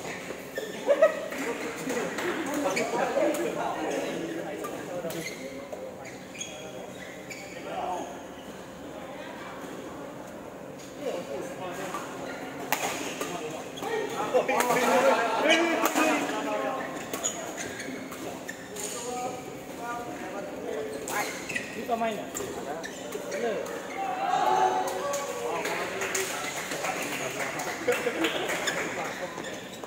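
Shuttlecocks are struck with rackets in sharp, repeated pops.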